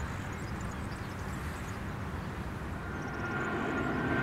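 A jet airliner's engines roar loudly during takeoff.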